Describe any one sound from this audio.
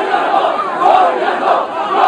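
A man shouts nearby with great excitement.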